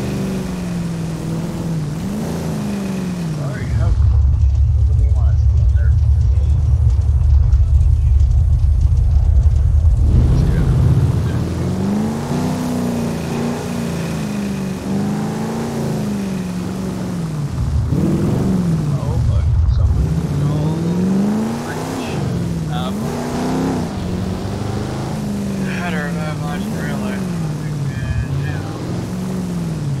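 A car engine revs up and down as the car drives.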